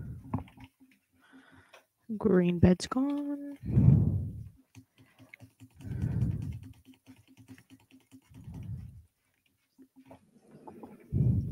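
Computer keys and a mouse click rapidly and softly.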